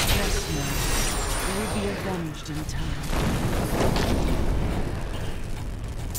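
Fire roars and bursts into flame.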